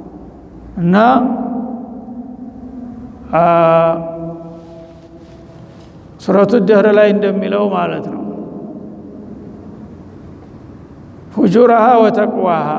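An elderly man chants slowly and melodiously into a microphone, in a reverberant room.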